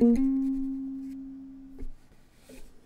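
A ukulele chord rings out and slowly fades.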